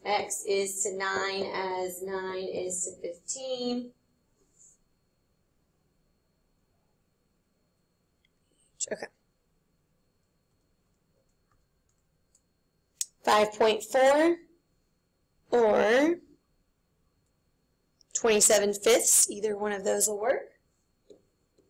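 A young woman speaks calmly over an online call, pausing between phrases.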